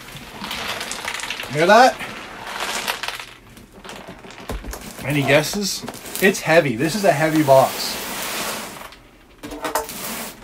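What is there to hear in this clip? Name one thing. Cardboard scrapes and rustles as a box is handled.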